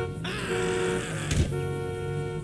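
A body thuds heavily onto pavement.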